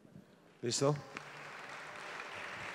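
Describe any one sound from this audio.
An audience applauds, building slowly.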